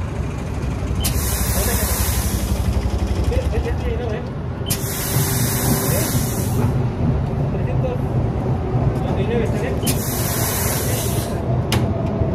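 Compressed air hisses in short bursts into a bicycle tyre.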